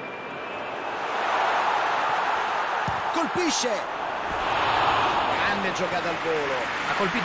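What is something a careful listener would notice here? A crowd cheers loudly, swelling and then easing off.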